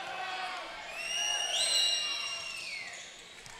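A referee blows a whistle.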